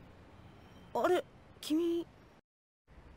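A boy speaks briefly with surprise.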